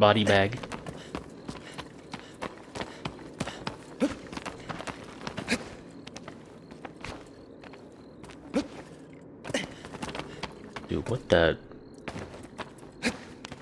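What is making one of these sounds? Footsteps patter quickly on a stone floor.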